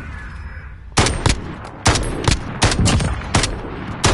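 Rifle shots crack loudly, several in quick succession.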